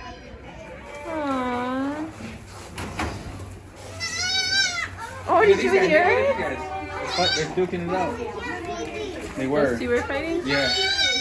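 Young goats bleat loudly nearby.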